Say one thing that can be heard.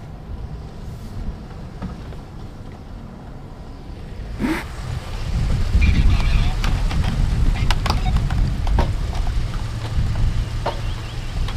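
A pickup truck rumbles across a bridge, its planks knocking.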